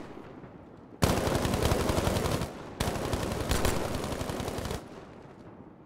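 An automatic rifle fires in long rapid bursts.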